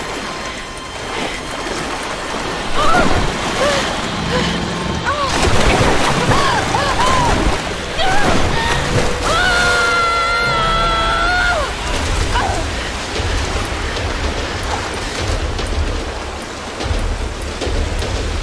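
Water rushes and churns loudly.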